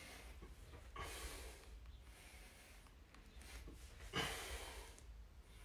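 A man exhales sharply and heavily, close by.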